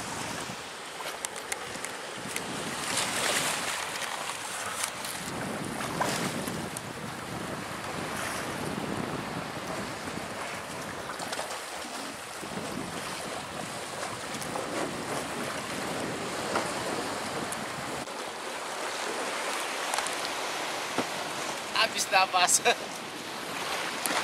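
Shallow water laps and splashes against a wooden outrigger boat's hull.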